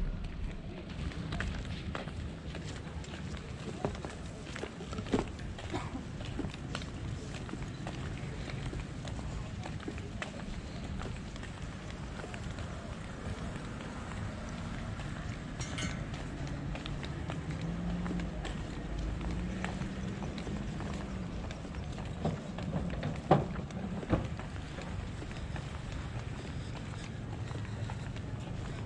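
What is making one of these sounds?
A cooler bag knocks and rattles as it swings.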